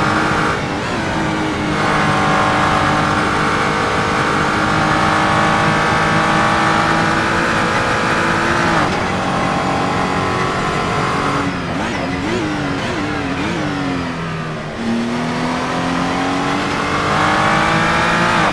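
A racing car engine roars loudly, revving up through the gears and dropping in pitch at each shift.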